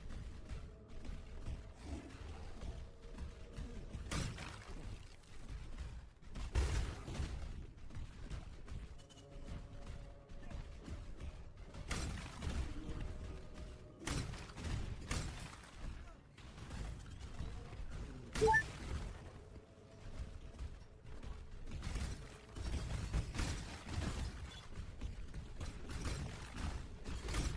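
Fiery spells burst and crackle again and again.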